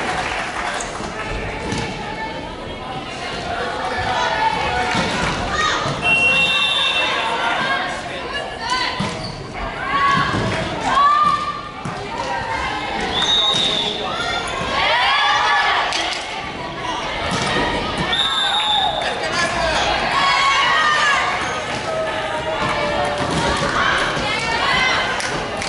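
Young women chatter and call out across a large echoing hall.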